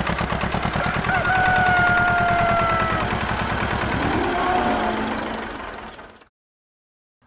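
A tractor engine chugs steadily and then fades away.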